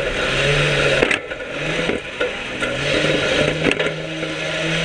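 The car's body rattles and clanks over the rough track.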